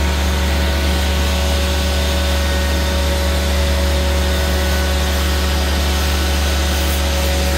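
A pressure washer hisses as its spray blasts steadily.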